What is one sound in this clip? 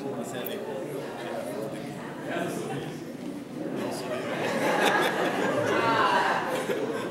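Adult men and women chatter together nearby.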